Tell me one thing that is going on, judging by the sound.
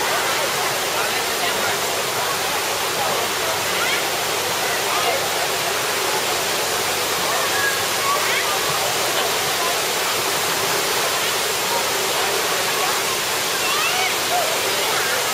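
Children and adults chatter and call out nearby, outdoors.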